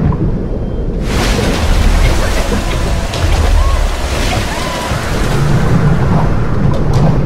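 Water churns and bubbles loudly as a swimmer thrashes.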